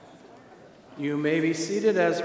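A man sings out loudly through a microphone in an echoing room.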